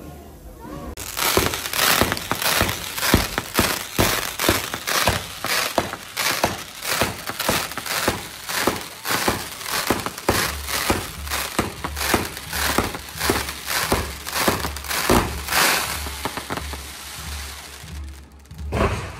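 Fireworks crackle and pop in rapid bursts outdoors.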